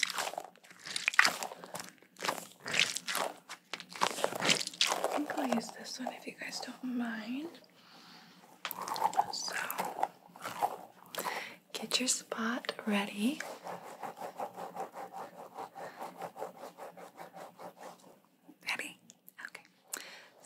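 A young woman whispers softly, close to a microphone.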